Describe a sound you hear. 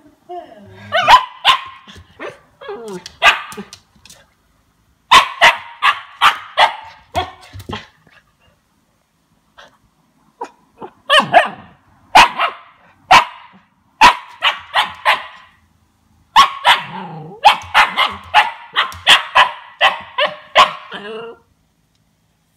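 A puppy's claws skitter and tap on a wooden floor.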